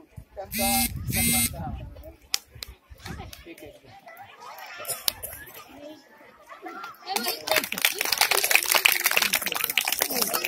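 Children chatter in a crowd.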